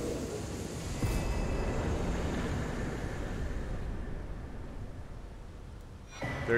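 A heavy rumbling boom swells and fades away.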